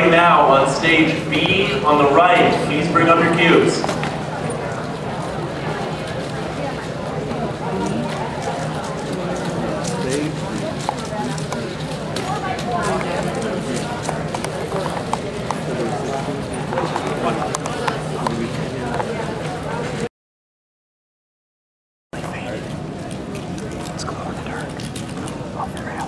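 Plastic puzzle cube pieces click and clatter as they are turned quickly.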